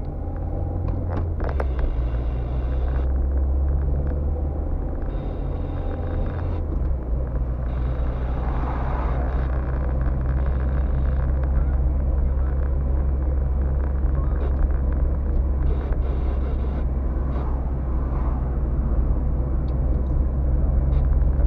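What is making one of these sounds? Tyres roll on rough asphalt with a steady rumble.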